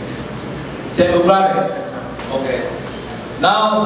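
A man speaks with animation into a microphone, heard over loudspeakers in a large room.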